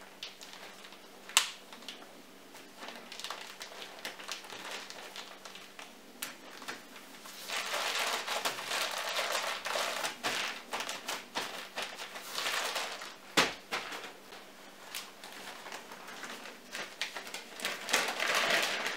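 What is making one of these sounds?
Plastic crinkles and rustles close by.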